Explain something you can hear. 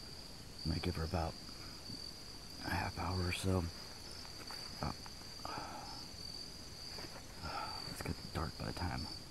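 A young man speaks quietly and close by, in short bursts with pauses.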